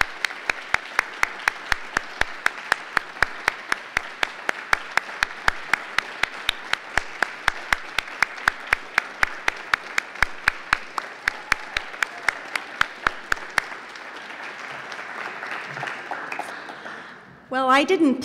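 An audience applauds.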